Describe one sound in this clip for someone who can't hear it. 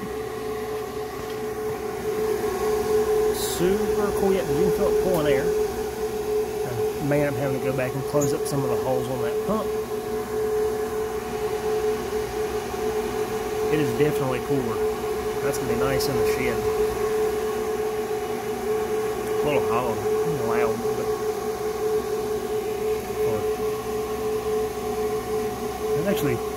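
A small motor hums steadily.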